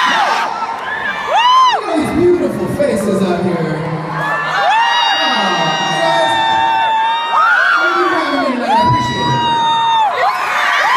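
A man sings through loudspeakers in a large echoing arena.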